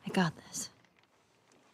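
A young girl speaks briefly and tensely.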